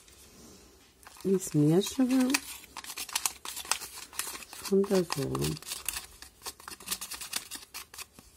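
A plastic spoon taps and scrapes in a thin plastic cup.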